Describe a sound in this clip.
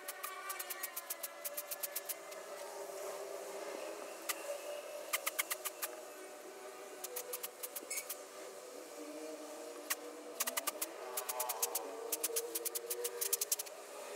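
A paintbrush taps against a plastic cup.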